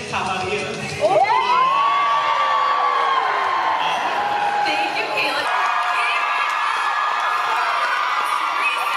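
An audience cheers and screams loudly.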